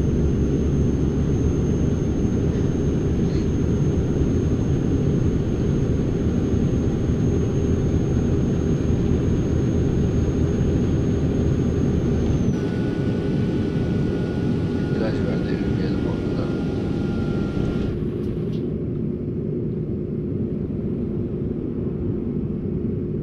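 Tyres roll on the road.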